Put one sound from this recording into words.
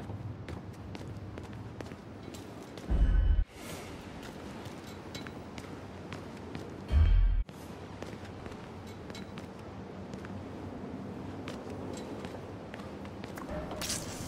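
Footsteps tap on a hard floor at a walking pace.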